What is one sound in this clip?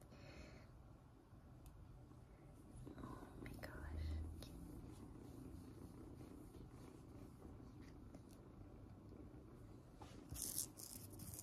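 Fabric rustles softly close by.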